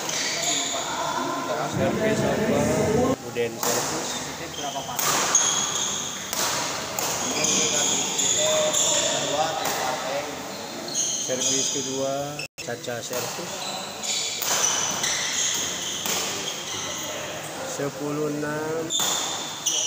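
A shuttlecock is struck sharply back and forth by rackets in an echoing hall.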